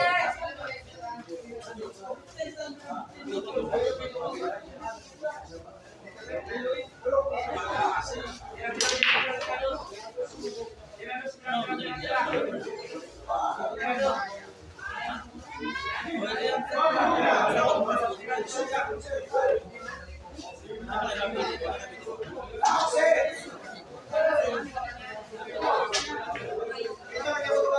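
A crowd of men talks and calls out nearby.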